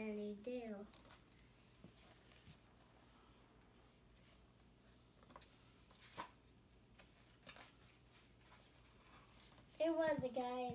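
A greeting card's paper rustles and flaps as it is handled.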